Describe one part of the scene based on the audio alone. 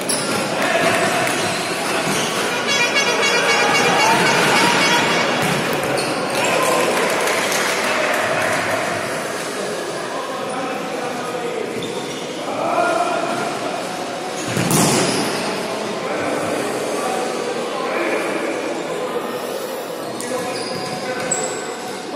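Players' shoes squeak on a hardwood court in a large echoing hall.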